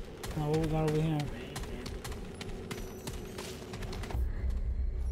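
Footsteps crunch on a hard floor.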